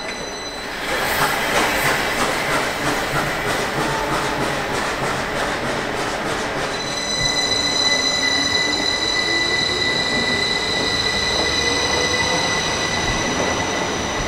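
Train wheels clack over the rail joints.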